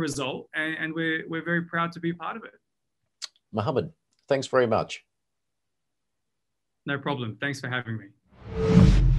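A man speaks calmly and cheerfully over an online call.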